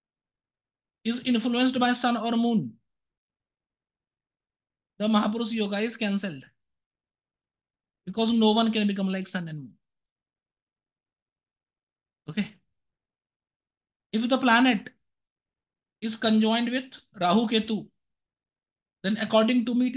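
A man speaks calmly through an online call, in short bursts with pauses.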